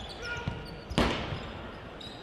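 A ball is kicked hard with a loud thump that echoes through a large hall.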